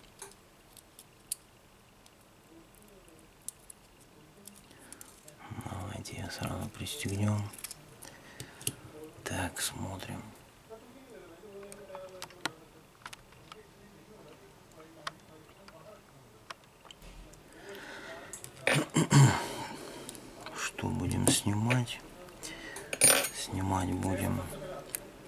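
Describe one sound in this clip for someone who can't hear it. Small plastic and metal parts click and tap as they are handled.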